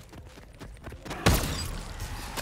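A gun fires a single loud shot.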